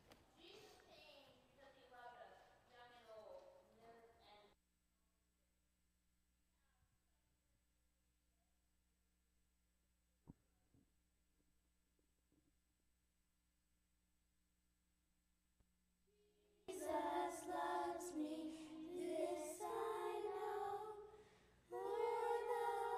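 A group of young children sings together in an echoing hall.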